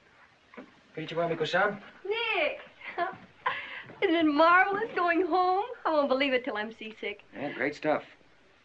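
A woman speaks excitedly, close by.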